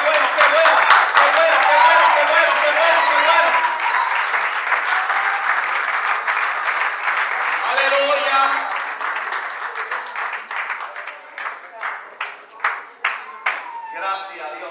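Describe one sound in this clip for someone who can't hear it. A crowd claps and cheers loudly in an echoing hall.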